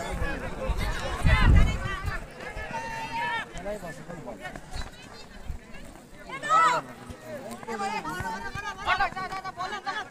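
Spectators shout and cheer from the side of an outdoor football pitch.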